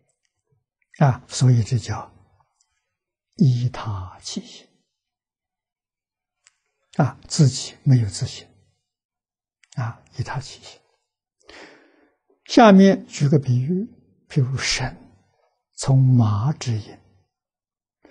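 An elderly man speaks calmly and slowly into a microphone, in short phrases with pauses.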